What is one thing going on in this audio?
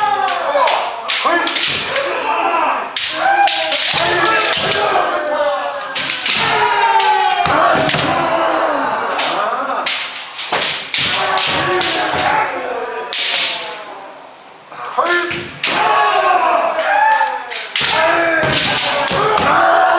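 Many men shout loudly, their cries echoing in a large hall.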